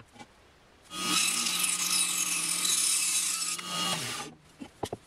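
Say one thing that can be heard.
A band saw whines loudly as it cuts through wood.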